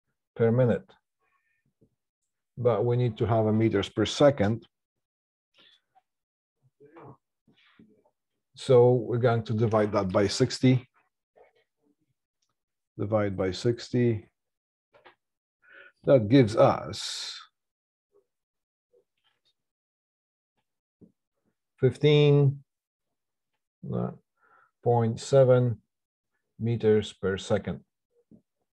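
A middle-aged man explains calmly into a close microphone, in short bursts with pauses.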